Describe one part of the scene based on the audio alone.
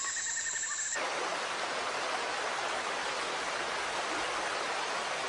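Water rushes over a small waterfall.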